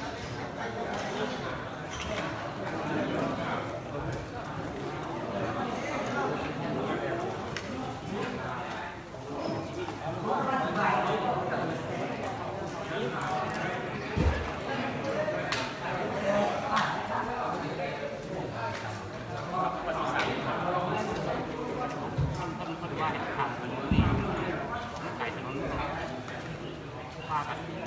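A crowd of people murmur and talk quietly in a large room.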